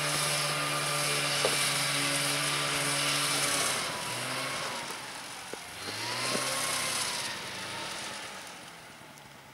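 A snowmobile engine drones nearby and revs up and down as it rides over snow.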